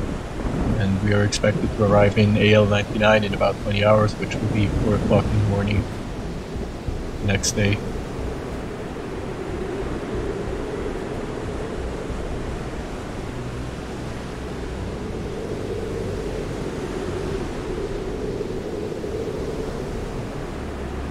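Wind blows over open water.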